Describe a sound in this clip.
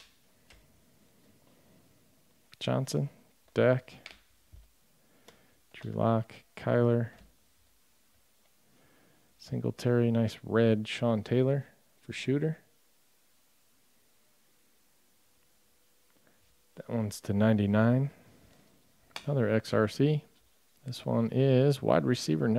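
Trading cards slide and flick softly as they are shuffled by hand.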